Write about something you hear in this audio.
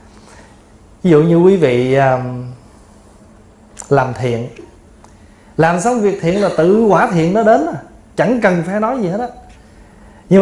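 A middle-aged man speaks calmly and warmly into a microphone, with pauses.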